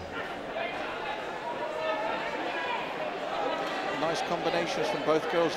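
A crowd shouts and cheers in a large hall.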